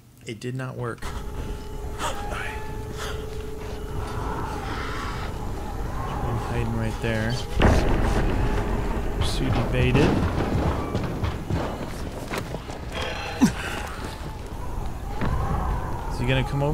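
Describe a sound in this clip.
Footsteps patter quickly across a rooftop.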